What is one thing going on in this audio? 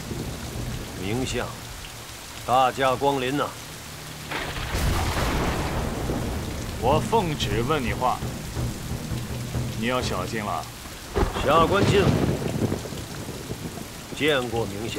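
A man speaks slowly and gravely.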